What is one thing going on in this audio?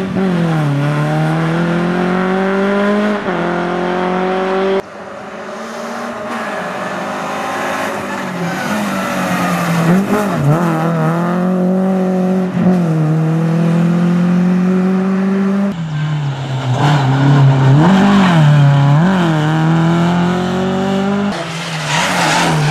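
A rally car engine revs hard and shifts gears as the car speeds along.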